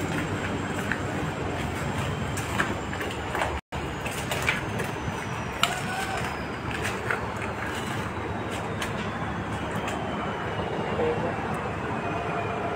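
Footsteps crunch over debris and broken glass.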